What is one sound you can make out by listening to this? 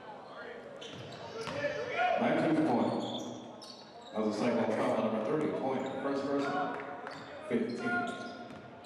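Spectators cheer and shout.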